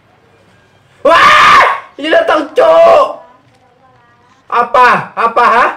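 A young man exclaims loudly into a headset microphone.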